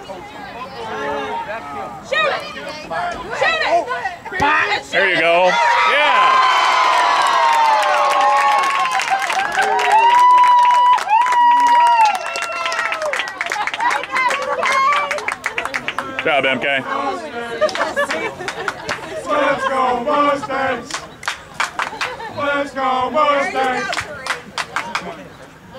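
A small crowd of spectators shouts and cheers nearby, outdoors.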